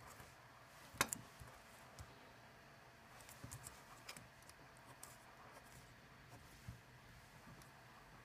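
Paper rustles under a hand.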